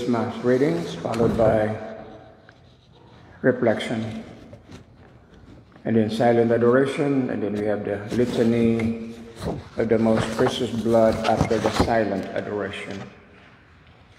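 A man sings a slow chant through a microphone in a large echoing room.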